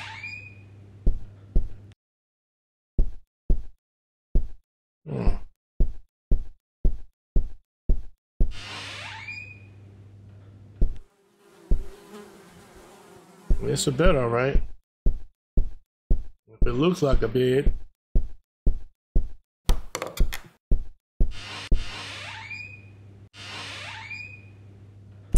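Footsteps thud on a wooden floor at a steady pace.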